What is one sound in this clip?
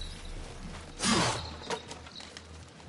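Wooden planks smash apart and clatter to the ground.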